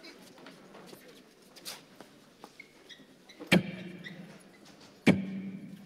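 Feet scuffle and stamp on the floor.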